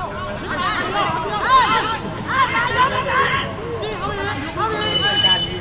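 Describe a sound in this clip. Young men shout and call to each other across an open outdoor field.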